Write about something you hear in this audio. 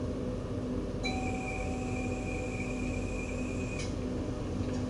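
A tram's door chime beeps steadily.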